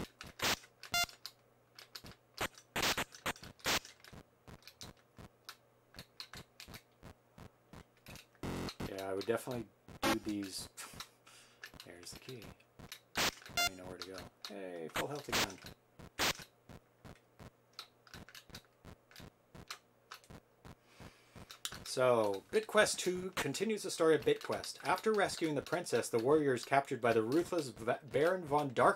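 Short electronic game beeps and blips sound again and again.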